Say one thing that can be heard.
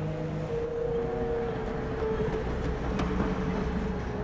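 A tram hums and rumbles past on its rails, close by.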